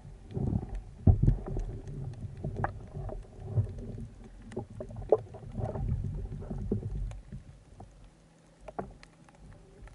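Water rushes and gurgles underwater.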